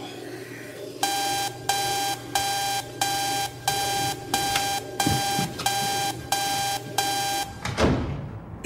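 An electronic alarm beeps in a steady rhythm.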